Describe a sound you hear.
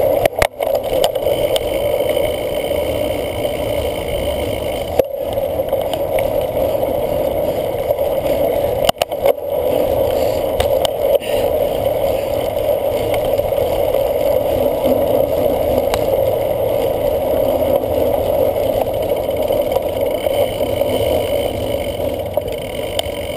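Wind rushes over a microphone as a cyclocross bike rides fast.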